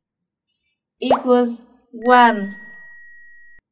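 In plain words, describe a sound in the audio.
A young woman speaks brightly and clearly into a close microphone.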